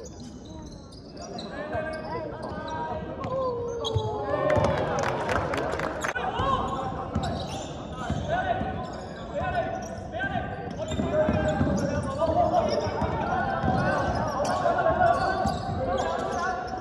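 Young men shout and call out across a large echoing hall.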